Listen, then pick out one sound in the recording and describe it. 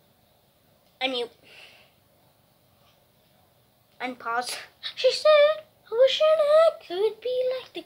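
A boy speaks loudly and with animation close by.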